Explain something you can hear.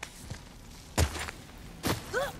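Feet land with a heavy thud on rocky ground.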